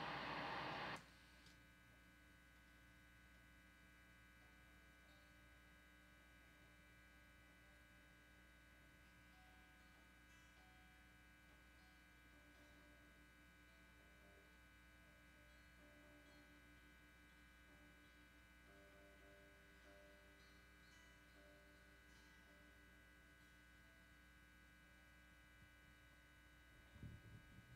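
An amplifier hums steadily.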